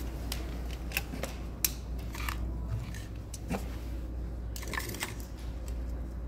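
A plug clicks into a wall socket.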